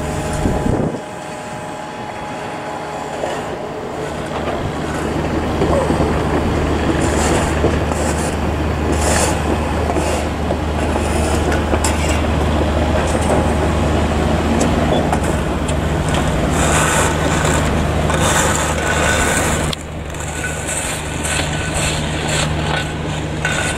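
A heavy machine engine rumbles steadily nearby.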